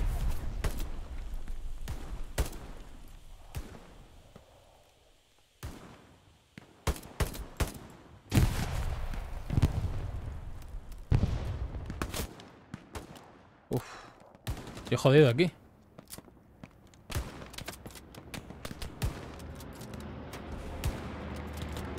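Gunshots crack in quick bursts with some echo.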